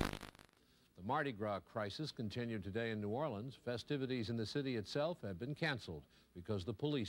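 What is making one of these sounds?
A middle-aged man reads out the news through a television speaker.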